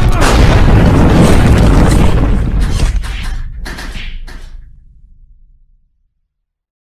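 A loud explosion booms and rumbles, then slowly fades away.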